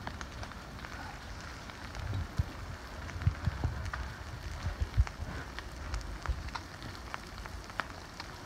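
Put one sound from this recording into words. A low rumble of fire rolls on outdoors.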